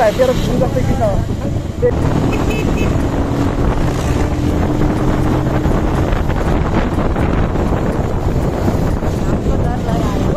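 Wind rushes past while riding outdoors.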